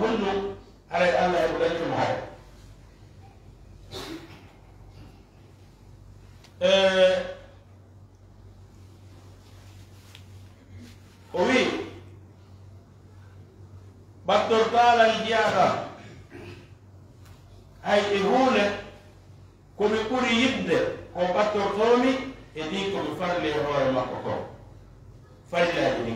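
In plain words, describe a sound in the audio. An elderly man reads aloud through a microphone in slow phrases with long pauses.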